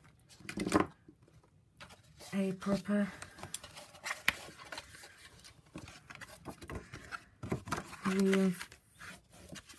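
Stiff card rustles as it is handled and folded.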